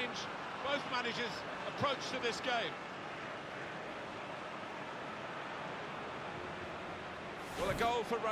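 A large crowd cheers steadily in a stadium.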